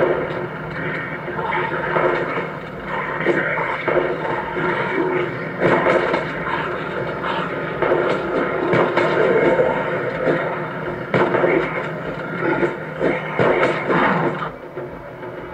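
Gunshots crack rapidly from a video game on a phone speaker.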